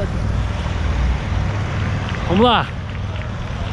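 A young man speaks excitedly close to the microphone.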